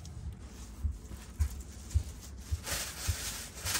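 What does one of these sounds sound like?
Footsteps thump on a hard floor.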